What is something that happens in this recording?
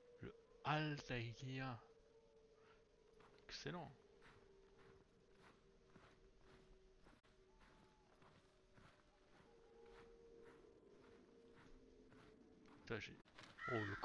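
Footsteps crunch steadily on snow.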